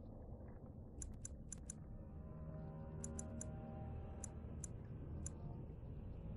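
Short menu clicks tick several times.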